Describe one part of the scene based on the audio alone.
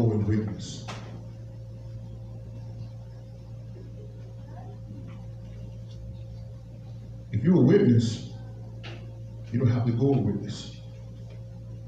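A man speaks into a microphone in short bursts, heard through a loudspeaker in an echoing room.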